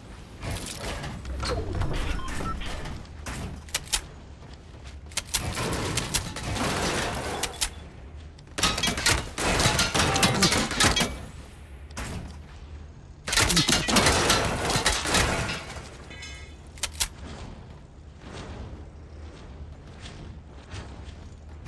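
Building pieces snap into place with quick, sharp clacks.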